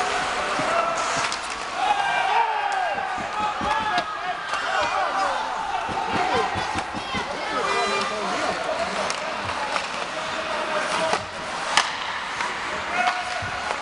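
A crowd of spectators cheers and shouts in a large echoing arena.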